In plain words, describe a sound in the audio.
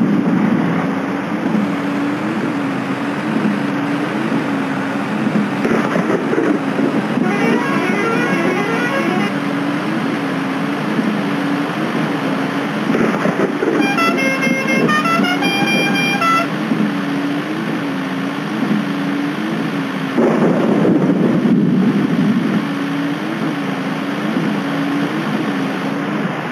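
Rain patters steadily.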